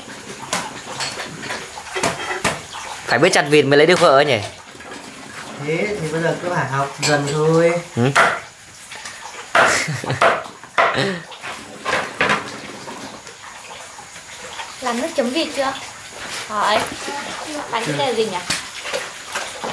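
A cleaver chops sharply through fish on a wooden board.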